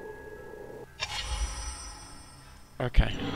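A short electronic chime rings out.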